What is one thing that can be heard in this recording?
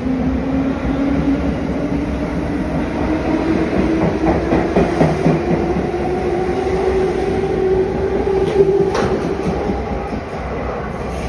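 A train pulls out with a rising electric motor whine.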